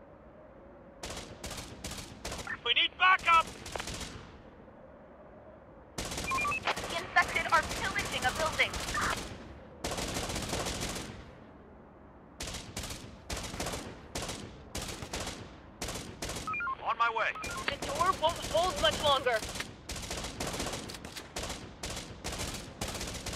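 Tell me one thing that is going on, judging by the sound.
Gunfire crackles in short, rapid bursts.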